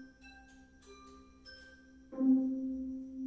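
Piano notes ring out and fade.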